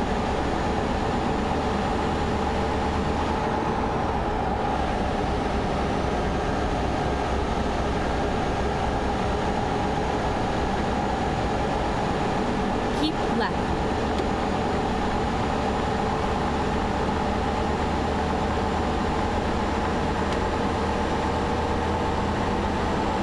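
Tyres roll and rumble on a road.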